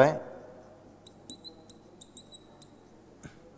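A marker scratches and taps on a whiteboard.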